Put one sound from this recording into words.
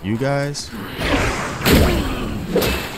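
A staff swings and strikes with a loud burst.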